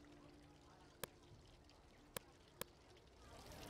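Short, sharp clicks sound a few times.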